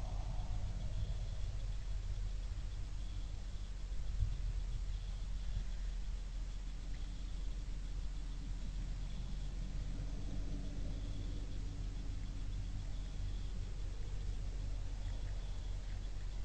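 A deer crunches feed on the ground.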